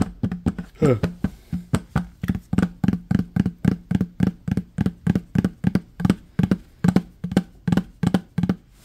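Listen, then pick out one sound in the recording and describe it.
Fingertips tap rapidly and rhythmically on a hollow plastic lid.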